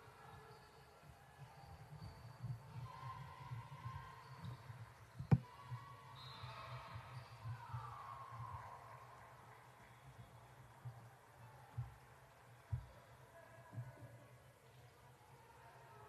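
A basketball bounces on a wooden floor in a large echoing gym.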